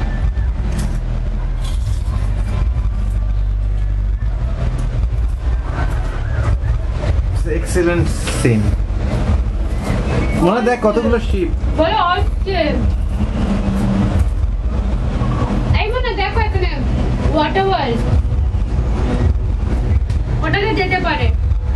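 A cable car cabin hums and rumbles low and steadily.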